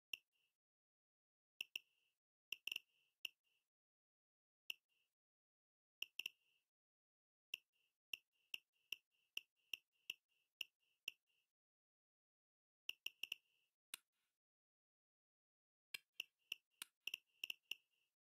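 Short electronic menu clicks tick in quick bursts.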